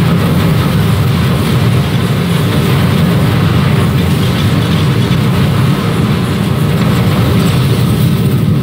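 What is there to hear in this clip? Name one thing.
Explosions boom repeatedly.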